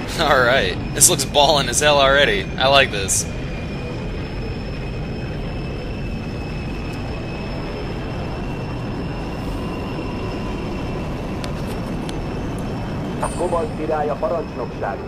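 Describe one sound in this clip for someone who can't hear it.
Many propeller aircraft engines drone steadily overhead.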